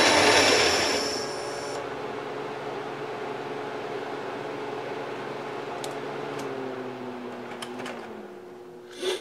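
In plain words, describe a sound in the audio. A lathe motor hums quietly and slowly winds down.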